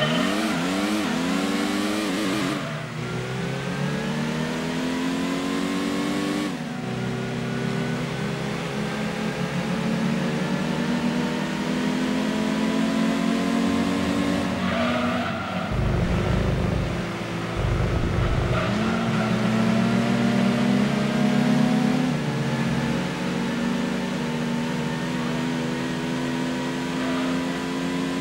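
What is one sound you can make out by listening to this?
A racing car engine revs up high, dropping in pitch with each gear change.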